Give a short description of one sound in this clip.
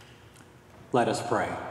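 A man begins speaking calmly through a microphone in a large echoing hall.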